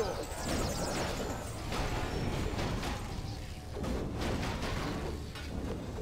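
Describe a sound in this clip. Magic spells crackle and burst with sharp effects.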